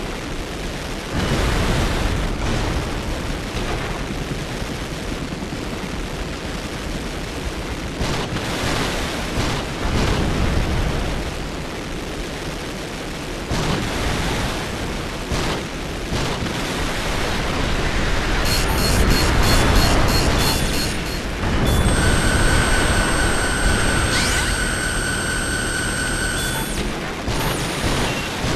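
Jet boosters roar as a large robot flies and hovers.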